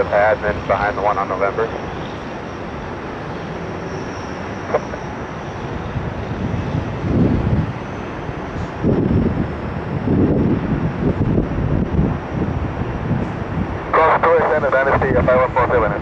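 Jet engines roar as an airliner brakes hard down a runway.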